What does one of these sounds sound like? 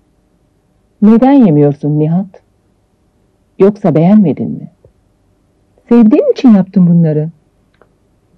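A woman speaks nearby, with feeling.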